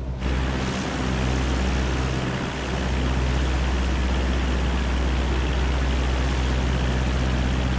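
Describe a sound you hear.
A small propeller plane's engine drones steadily.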